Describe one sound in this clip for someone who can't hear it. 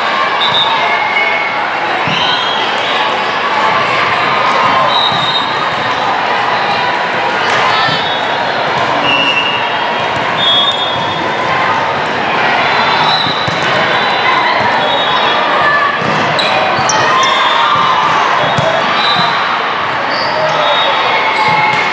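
A large hall echoes with the chatter of many players and spectators.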